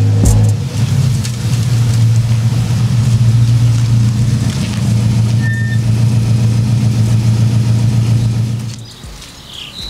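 A sports car engine idles with a deep, steady rumble, then cuts off.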